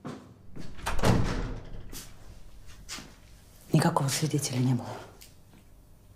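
A young woman speaks softly and with emotion, close by.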